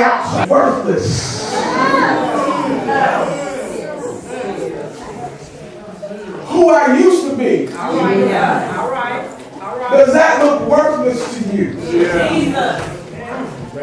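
A man preaches with animation into a microphone, heard through loudspeakers in an echoing hall.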